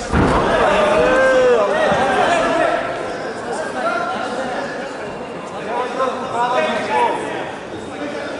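Men shout loudly nearby.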